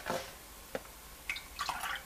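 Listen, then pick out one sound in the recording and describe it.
Milk pours into a metal pot.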